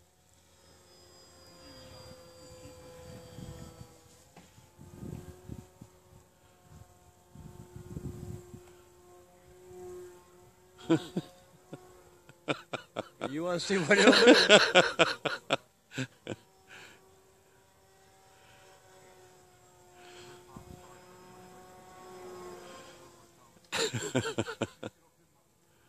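A small model plane's engine buzzes high overhead, rising and falling in pitch.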